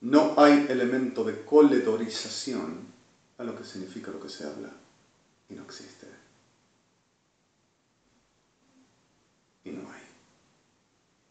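A middle-aged man speaks calmly and close to the microphone, in short bursts with pauses.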